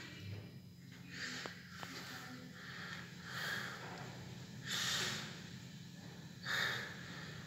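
An elevator hums steadily as it moves.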